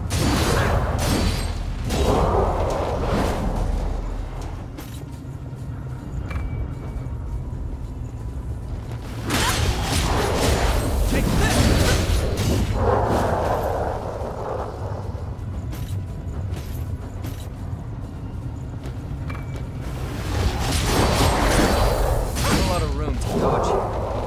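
Metal weapons clang and crunch on impact.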